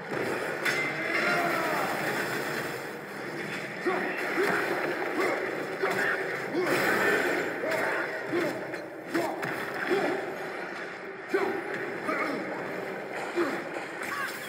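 An axe strikes with heavy thuds.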